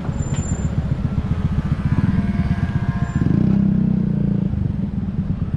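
A motor scooter engine hums as it passes close by.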